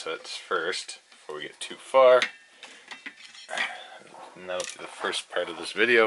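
A metal-backed circuit board clunks against a plastic rack as it is set down.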